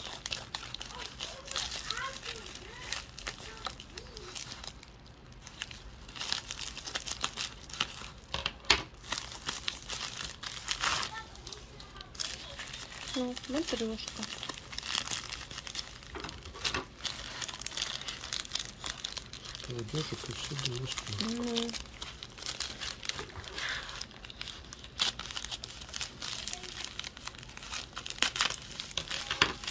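A plastic mailing bag crinkles and rustles in someone's hands.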